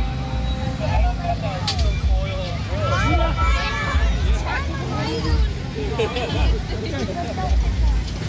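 Children shout and squeal nearby.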